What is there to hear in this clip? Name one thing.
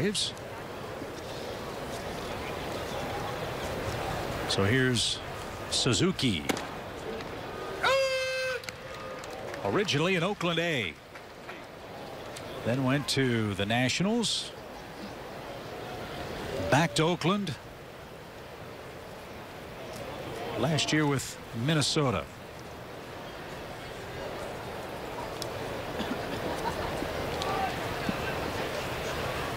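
A crowd murmurs steadily outdoors.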